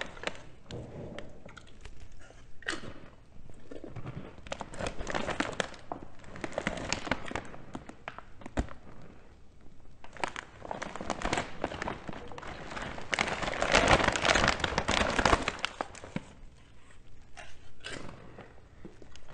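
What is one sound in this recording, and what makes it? A man crunches on chips.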